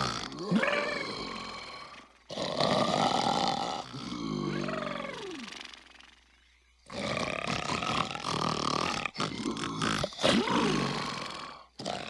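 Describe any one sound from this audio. A large creature snores with deep, rumbling breaths.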